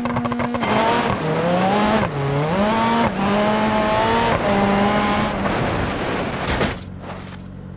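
Gravel sprays and crunches under spinning tyres.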